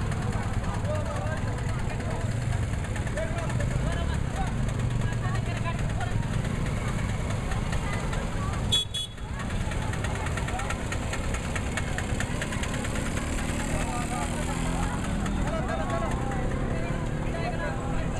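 Street traffic rumbles in the background.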